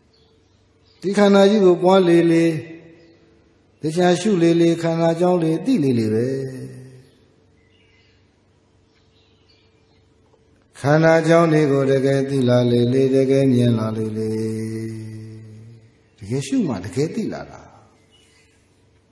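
A man chants in a low, steady voice through a microphone, in bursts with pauses between.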